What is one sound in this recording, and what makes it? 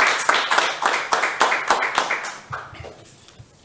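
People applaud in a room.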